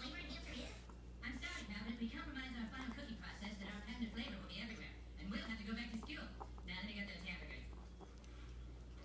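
Small dogs growl playfully while tugging at cloth.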